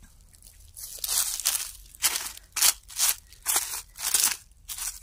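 A blade swishes and rustles through grass in quick strokes.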